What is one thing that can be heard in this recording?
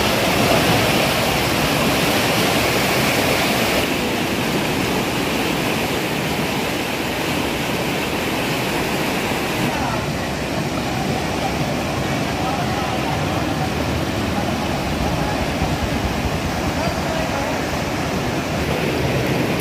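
Floodwater rushes and roars loudly.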